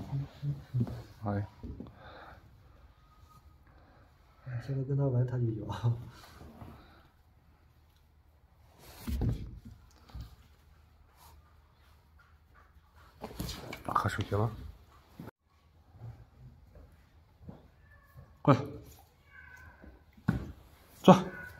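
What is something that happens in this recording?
A hand rubs a puppy's fur.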